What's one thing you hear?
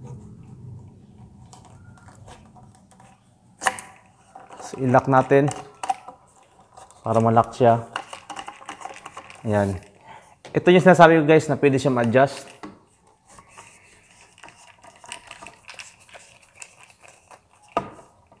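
Plastic pipe parts click and rattle as they are twisted together.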